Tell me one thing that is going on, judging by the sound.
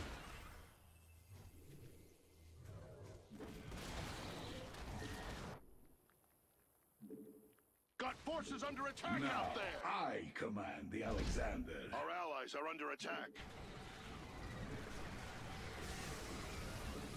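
Gunfire and explosions crackle in a battle.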